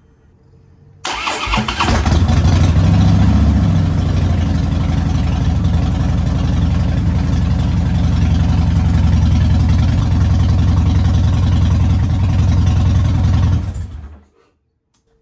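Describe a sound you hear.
A motorcycle engine starts up and idles with a deep rumble, then shuts off.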